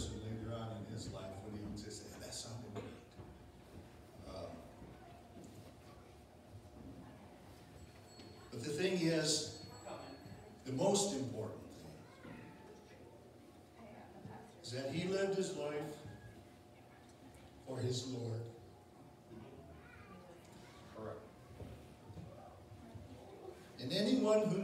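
A man speaks slowly and solemnly at a distance, his voice echoing in a large hall.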